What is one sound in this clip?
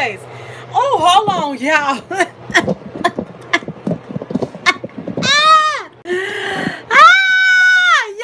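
A woman laughs loudly and sings out close by.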